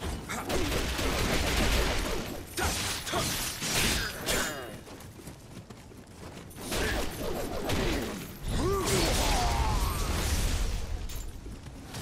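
Swords clash and slash in a loud fight.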